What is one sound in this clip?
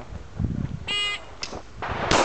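A shot timer beeps sharply.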